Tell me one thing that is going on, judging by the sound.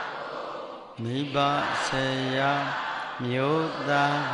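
An elderly man chants in a deep voice through a microphone.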